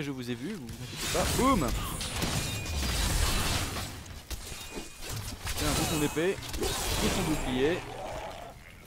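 Blows and magic blasts crash in a fight.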